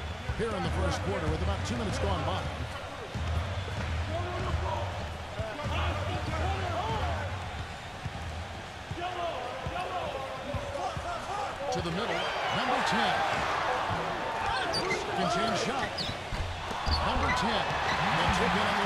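A crowd murmurs and cheers in a large arena, growing louder partway through.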